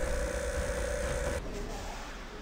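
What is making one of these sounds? A robot's energy beam hums loudly as it fires.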